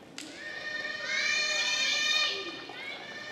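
Young women call out loudly across the court.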